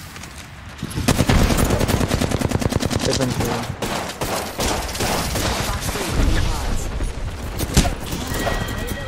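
Gunfire rattles rapidly from a game.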